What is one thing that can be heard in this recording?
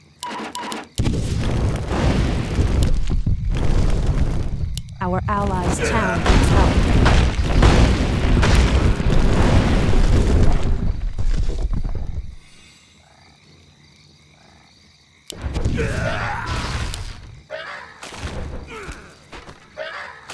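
Magic blasts and sword strikes crash loudly in a video game battle.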